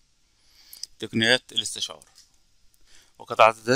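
A man speaks calmly into a headset microphone, heard over an online call.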